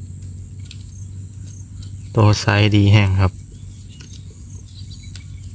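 Small shrimp patter softly as a net is shaken over a bucket.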